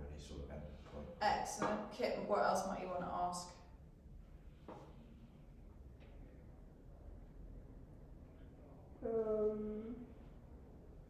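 A woman speaks calmly at a distance in a bare, slightly echoing room.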